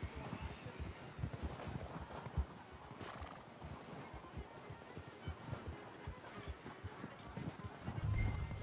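A horse's hooves crunch steadily through snow.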